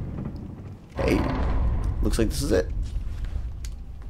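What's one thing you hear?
Heavy stone doors grind slowly open with a deep rumble.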